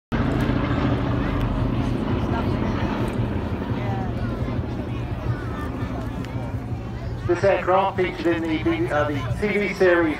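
A propeller airplane's engines drone overhead and slowly fade into the distance.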